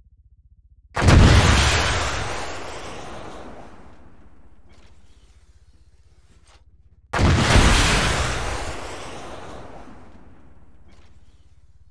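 A heavy gun fires with a loud boom that rolls away and echoes.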